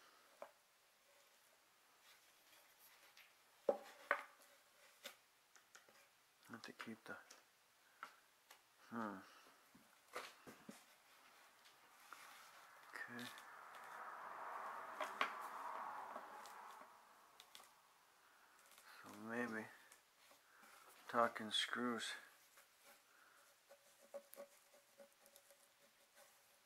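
Hands handle and knock wooden chair parts.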